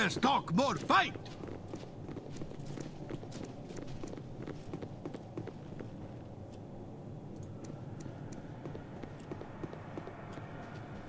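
Footsteps patter softly on stone.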